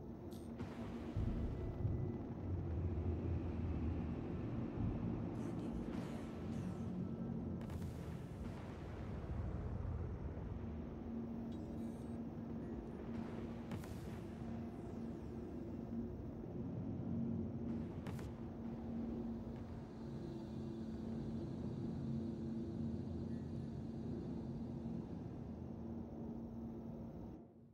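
A spacecraft engine hums and rumbles steadily.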